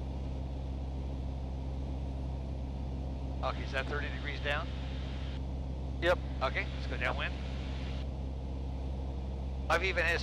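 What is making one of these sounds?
A light plane's propeller engine drones steadily.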